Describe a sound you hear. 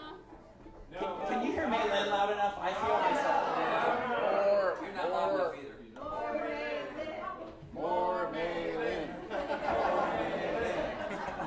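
An elderly man sings into a microphone.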